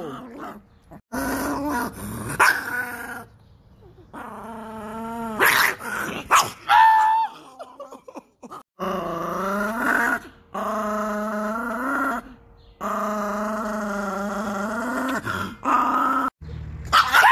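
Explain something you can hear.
A small dog howls in long, wavering notes close by.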